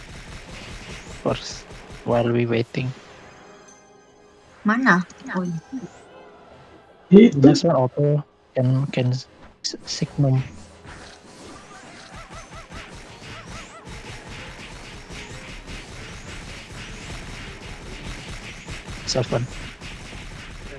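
Magic spell effects burst and chime in a video game.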